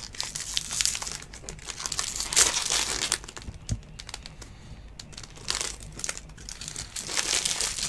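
A foil wrapper crinkles and rustles as hands tear it open.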